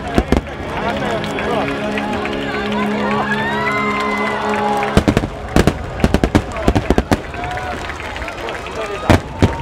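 Fireworks crackle and fizzle as sparks fall.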